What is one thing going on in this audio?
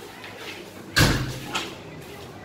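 A door thuds open.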